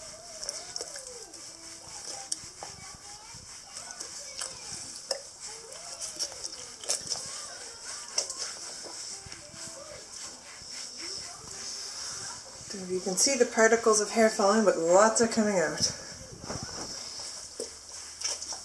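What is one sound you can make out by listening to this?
A rubber brush rubs through a dog's short fur.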